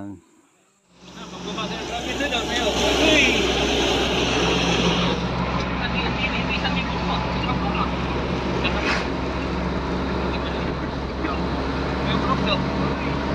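A vehicle engine hums and tyres rumble steadily on a paved road.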